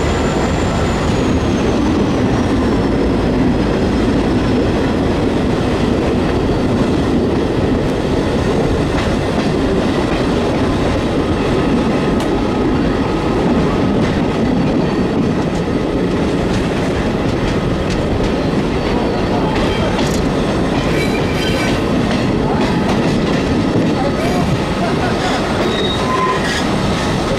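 A train rumbles steadily along the tracks, heard from a window.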